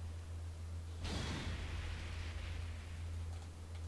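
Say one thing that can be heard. A sharp whoosh sweeps in and fades.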